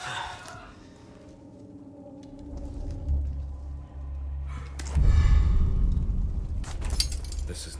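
A fire crackles softly in a fireplace.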